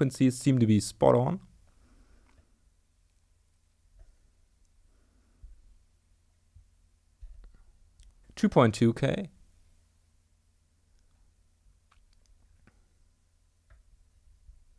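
Small sliders slide and click softly.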